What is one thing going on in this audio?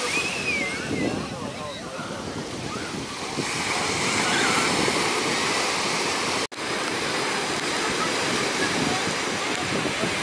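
Small waves break and wash steadily onto a sandy shore.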